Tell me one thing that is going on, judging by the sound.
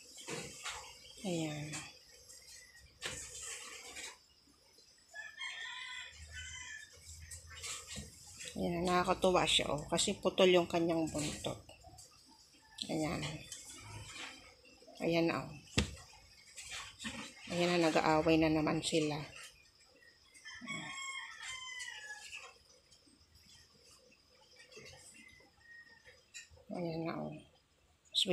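A cat meows loudly now and then.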